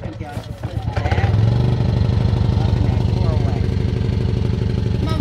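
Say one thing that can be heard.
A small generator engine starts and runs with a steady, fast chugging hum.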